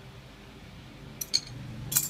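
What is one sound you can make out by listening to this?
Metal tools clatter briefly on a hard floor.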